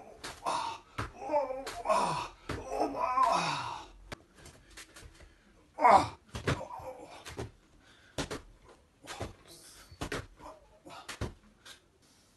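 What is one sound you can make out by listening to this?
Hands and feet thump on a padded floor mat.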